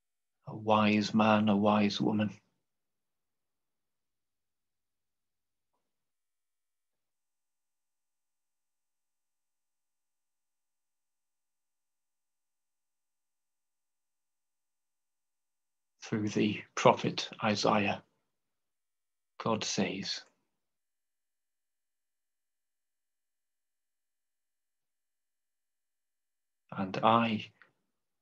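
A middle-aged man speaks calmly through a microphone on an online call, with long pauses.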